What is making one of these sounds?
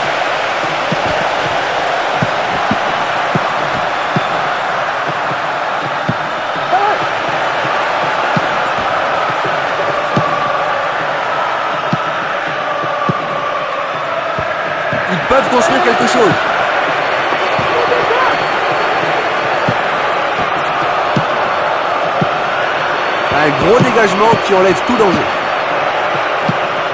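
A football thuds as it is kicked, again and again.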